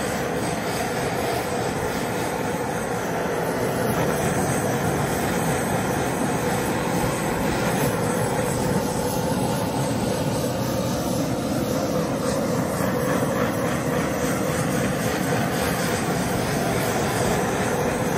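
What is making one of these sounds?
A handheld torch roars steadily with a hissing flame.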